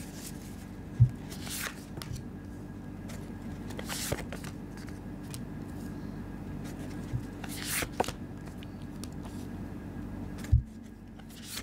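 Cards slide and tap softly on a smooth table.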